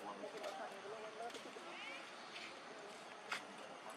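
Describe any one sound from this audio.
A small monkey scampers and rustles through grass.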